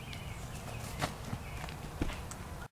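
Footsteps thud on grass.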